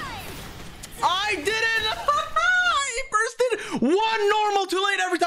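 A young man shouts in excitement.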